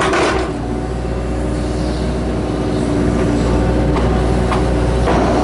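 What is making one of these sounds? Hydraulics whine as an excavator arm moves.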